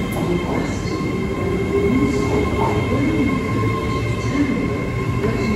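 A train rolls slowly past with a steady rumble and clatter of wheels.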